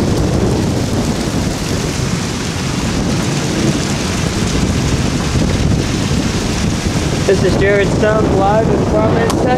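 Strong wind roars and gusts.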